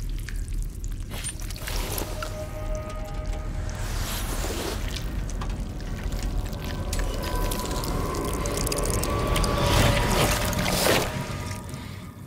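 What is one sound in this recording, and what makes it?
Cloth rustles and crumples as hands rummage through it.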